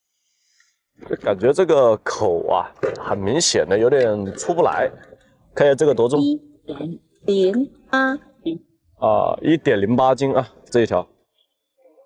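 A young man talks calmly close by.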